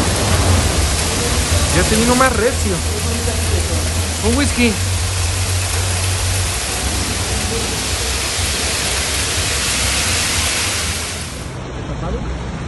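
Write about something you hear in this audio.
Hail pours down and hisses on the ground outdoors.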